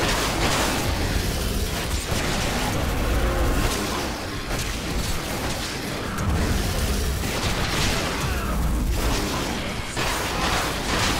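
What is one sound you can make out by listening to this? Blades slash and hit flesh again and again in a fast fight.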